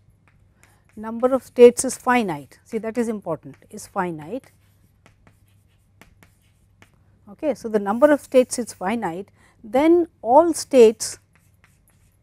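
A woman speaks calmly and clearly, as if lecturing.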